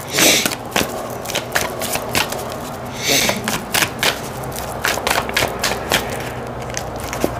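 Playing cards are shuffled close by, with quick slaps and riffling.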